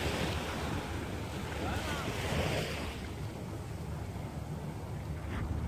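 Waves splash and wash against a pier.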